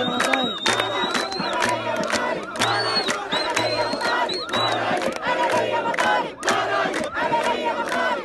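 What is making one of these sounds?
People in a crowd clap their hands in rhythm.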